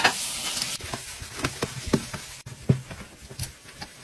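A sponge scrubs a metal sink.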